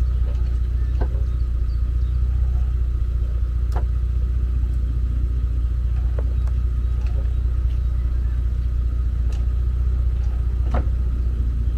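Metal hooks and fittings clink sharply now and then.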